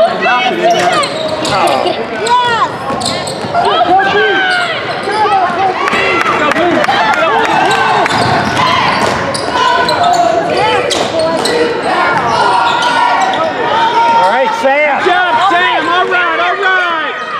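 Spectators nearby talk and shout in a large echoing gym.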